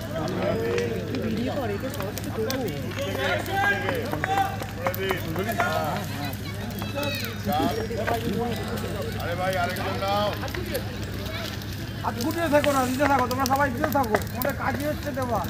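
A crowd of men and women chatter and call out loudly outdoors.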